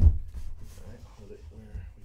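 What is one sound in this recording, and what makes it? Cardboard tubes bump and rustle as a hand moves them.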